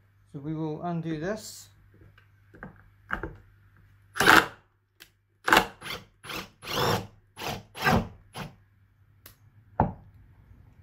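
A cordless screwdriver whirs in short bursts.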